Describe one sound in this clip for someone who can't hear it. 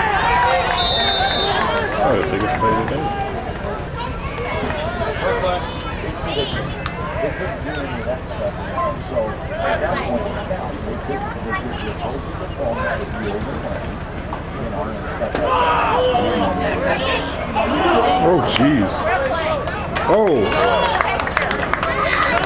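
A crowd of spectators and players shouts and cheers outdoors.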